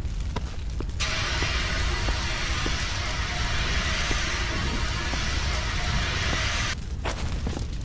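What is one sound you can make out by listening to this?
A fire extinguisher sprays with a steady loud hiss.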